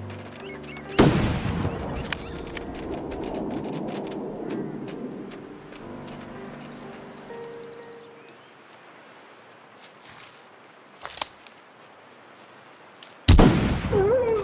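A rifle fires twice, each loud crack followed by a long echo.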